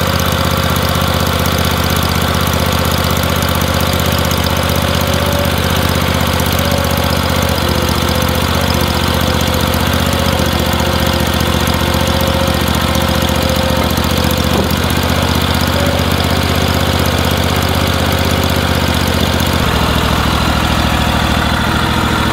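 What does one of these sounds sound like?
A tractor engine runs with a steady, loud rumble.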